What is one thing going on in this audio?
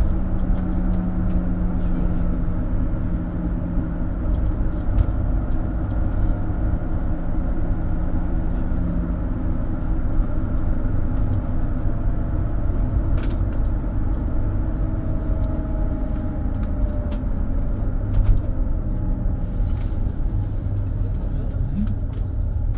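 A vehicle engine hums steadily while driving along a road.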